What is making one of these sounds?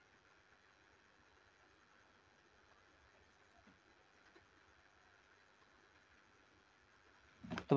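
A paintbrush dabs softly on paper.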